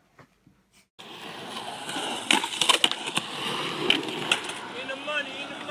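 Skateboard wheels roll on concrete outdoors.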